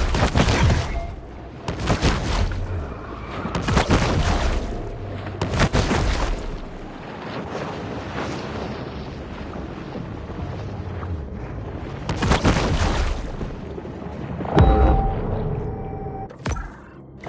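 Water rushes and swirls in loud surges underwater.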